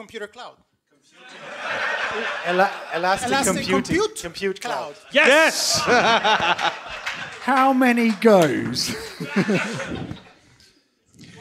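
Men talk and laugh with animation through headset microphones.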